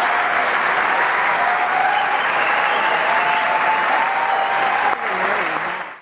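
A man plays an acoustic guitar in a large echoing hall.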